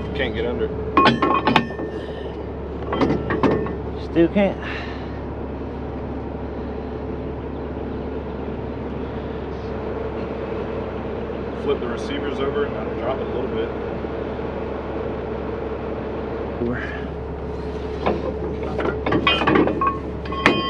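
Metal parts clank and knock sharply.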